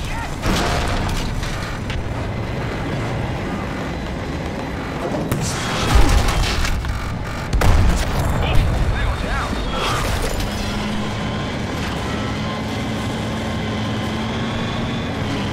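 A tank engine rumbles and its tracks clank steadily.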